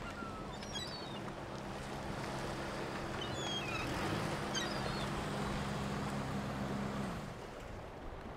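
A pickup truck's engine rumbles as it drives slowly.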